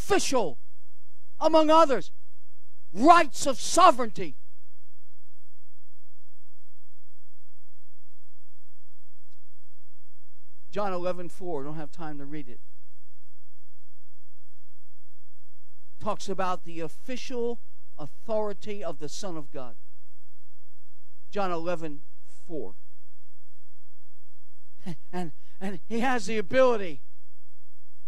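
An elderly man speaks into a microphone in bursts, with long pauses.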